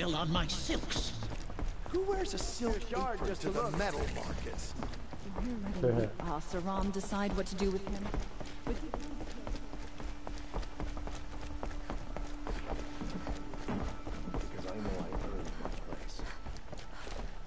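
Quick footsteps thud on wooden boards.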